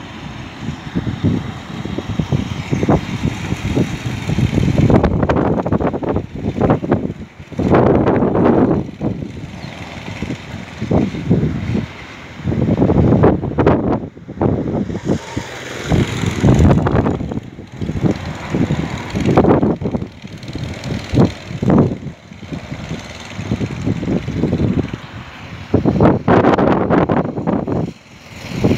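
Go-kart engines buzz loudly as karts race past close by, rising and falling.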